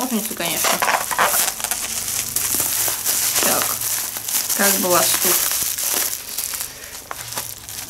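Plastic wrapping crinkles and rustles in hands.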